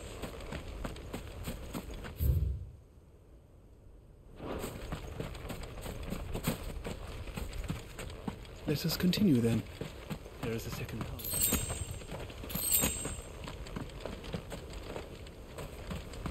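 Footsteps crunch through grass and dirt.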